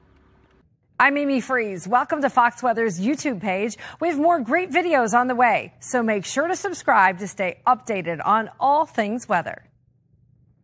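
A woman speaks clearly and evenly into a microphone, like a presenter.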